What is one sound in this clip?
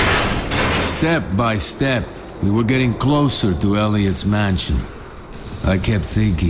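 A man speaks in a low, steady voice.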